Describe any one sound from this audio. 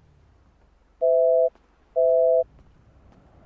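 A phone call tone beeps twice, loud and steady.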